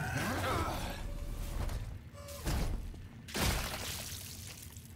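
Heavy boots stomp down hard with deep, wet thuds.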